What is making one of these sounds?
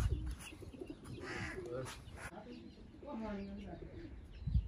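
A young woman talks with animation nearby.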